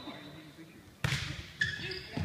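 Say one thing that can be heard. A volleyball is struck with a sharp slap on a serve.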